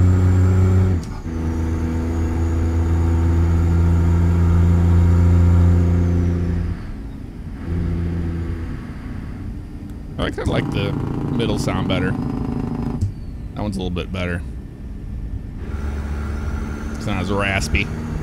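A truck engine drones low and steady, then quietens.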